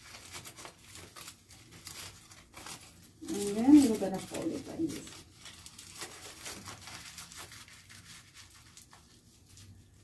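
Plastic gloves rustle against foil.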